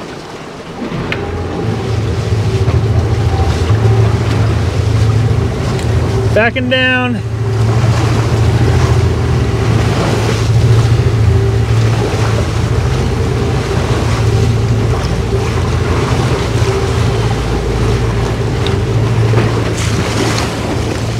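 A boat motor starts up and drones steadily.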